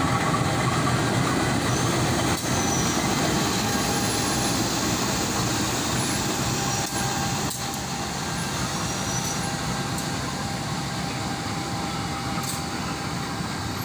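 A diesel-electric locomotive engine rumbles as it passes close by.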